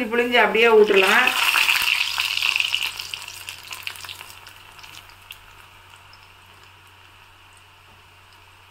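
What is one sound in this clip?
Batter hisses and sizzles loudly as it is poured into hot oil, then slowly fades.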